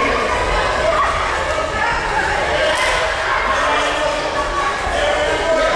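Many voices of children and adults chatter in a large echoing hall.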